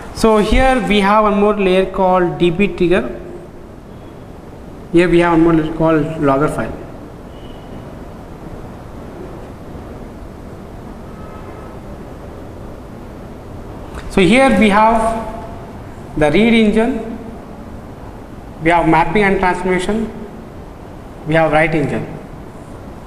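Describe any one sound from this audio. A young man speaks calmly and clearly into a close microphone, lecturing in bursts.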